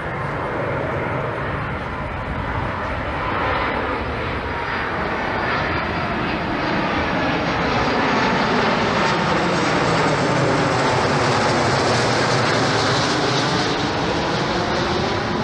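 A jet airliner's engines roar loudly overhead, growing louder as it passes low.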